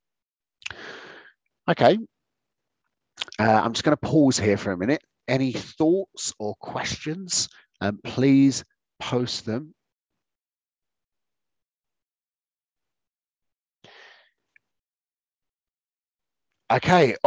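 A man speaks calmly and clearly through a microphone, pausing now and then.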